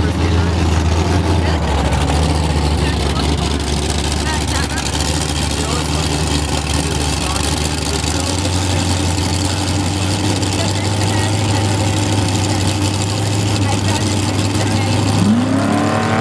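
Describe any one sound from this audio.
A race car engine rumbles deeply at idle.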